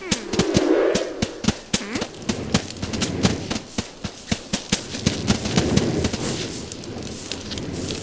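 Light footsteps patter quickly.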